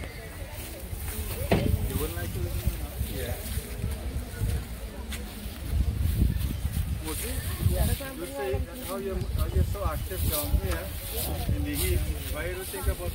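Elderly men talk nearby.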